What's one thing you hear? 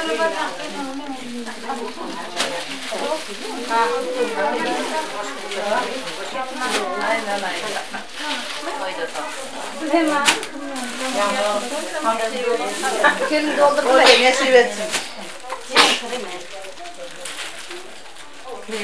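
Several women talk and chatter nearby.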